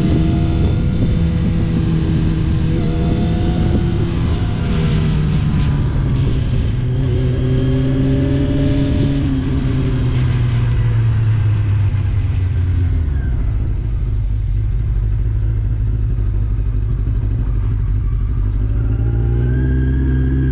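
A motorcycle engine hums and changes pitch as the rider shifts and slows.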